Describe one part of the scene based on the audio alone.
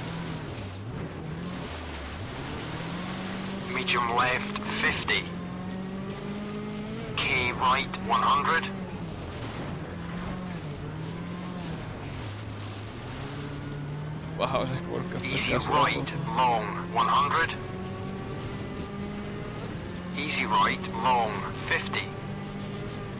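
A rally car engine hums and revs up and down as it drives.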